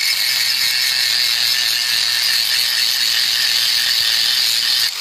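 An angle grinder whines loudly as it sharpens a metal blade.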